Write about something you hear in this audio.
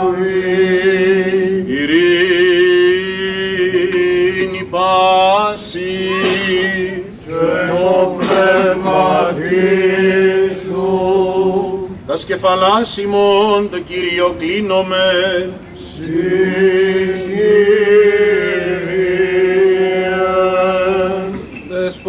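Men hold a low, steady humming note beneath the chant.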